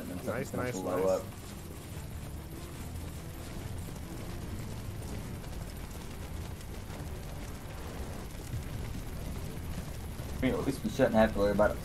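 A fire roars with a low, steady rumble.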